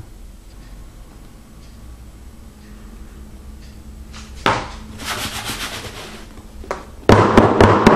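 A spatula scrapes soft batter in a metal pan.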